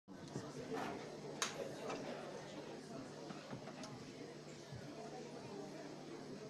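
A crowd of women murmurs quietly in an echoing hall.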